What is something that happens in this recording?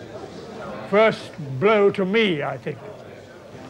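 An elderly man speaks from a lectern.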